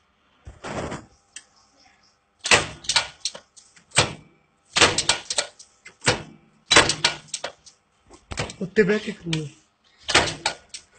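Metal parts clink and scrape against each other close by.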